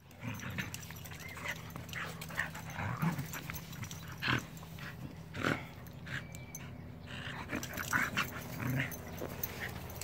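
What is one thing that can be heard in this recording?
Small dogs growl and snarl as they play-fight.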